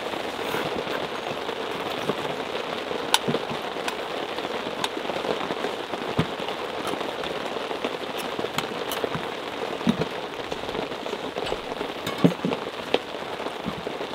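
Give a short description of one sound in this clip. Metal pot parts clink together.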